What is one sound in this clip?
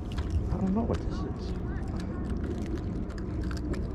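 A small fish flaps and wriggles on a fishing line.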